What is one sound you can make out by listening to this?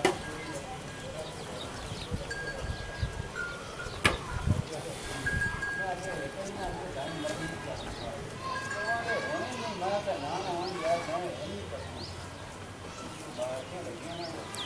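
A calf suckles noisily from its mother.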